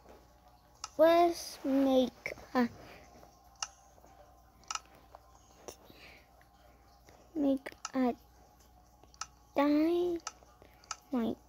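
A handheld game console plays short electronic jingles and chimes through its small speaker.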